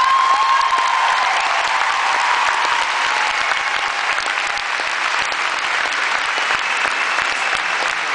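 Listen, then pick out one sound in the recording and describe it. A live band plays loudly through a large echoing sound system.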